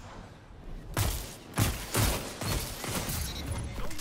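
A sci-fi gun fires in a video game.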